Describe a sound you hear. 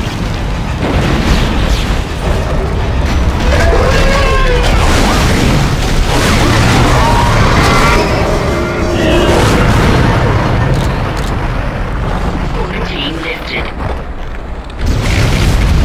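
An energy weapon fires with crackling bursts.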